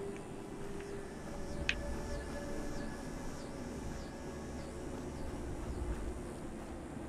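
Footsteps tread steadily over rough ground.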